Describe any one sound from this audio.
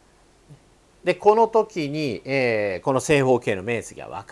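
An older man speaks calmly and close by, explaining with animation.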